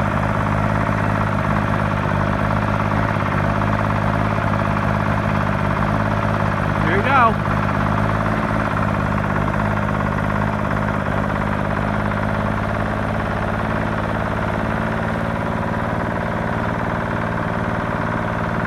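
An old diesel engine idles steadily with a low rumble, close by.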